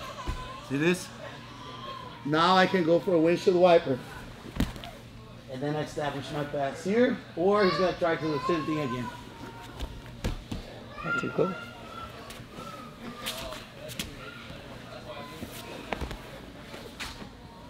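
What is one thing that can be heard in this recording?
Bodies shuffle and thump on a padded mat.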